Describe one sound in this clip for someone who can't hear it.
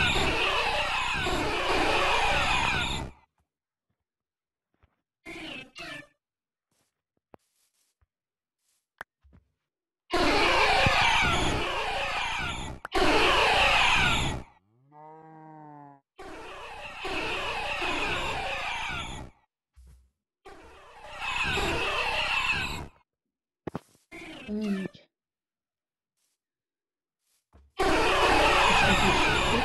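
Music plays in short bursts that stop and start abruptly.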